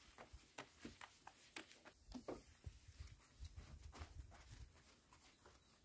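A cloth rubs and squeaks on a metal panel.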